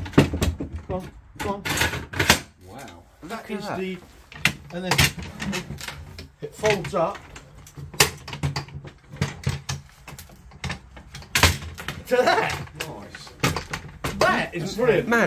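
A metal folding chair clanks and rattles as a man handles it.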